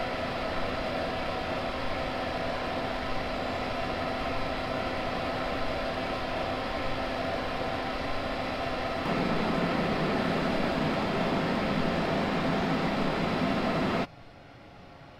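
An electric locomotive hums steadily while idling.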